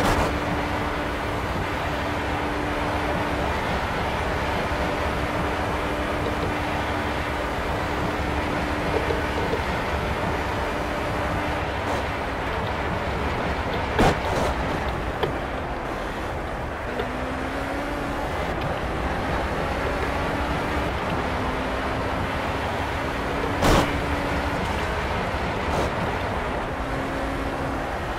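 An open-wheel race car engine runs at high revs.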